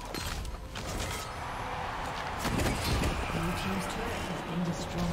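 Magic spells crackle and burst in a game.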